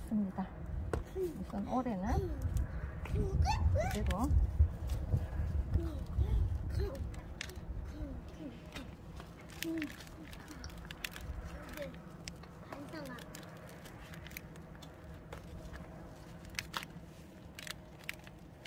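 Gloved hands crumble and rustle dry soil from a plant's roots.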